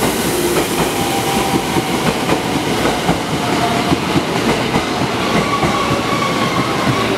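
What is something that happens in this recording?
Train wheels screech with faint squeals on the rails.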